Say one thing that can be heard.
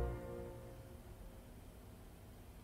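A small chamber orchestra holds a final chord that fades away in a large hall.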